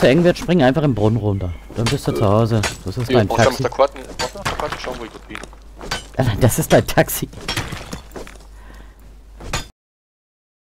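A pickaxe strikes stone with sharp knocks.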